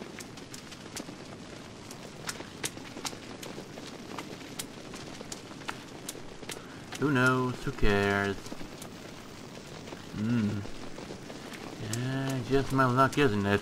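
A torch flame crackles and flickers.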